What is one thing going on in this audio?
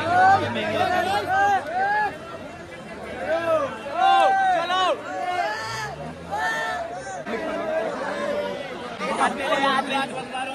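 A crowd of young men shouts and cheers close by.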